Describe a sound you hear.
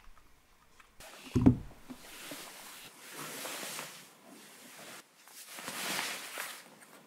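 A jacket rustles as it is pulled off.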